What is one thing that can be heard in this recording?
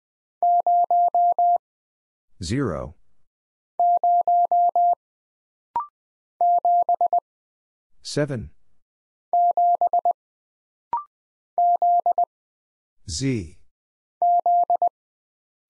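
Short, steady beeps tap out Morse code in quick bursts.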